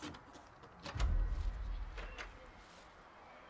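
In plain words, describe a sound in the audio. A heavy door swings open with a low rumble.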